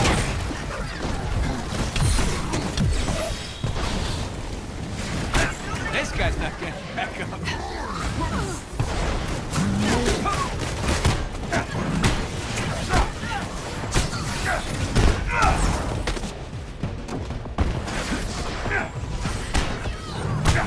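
Punches and impacts crash during a fight.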